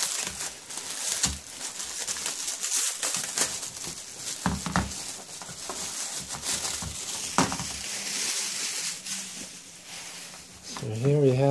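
Plastic wrapping crinkles and rustles as hands unwrap it.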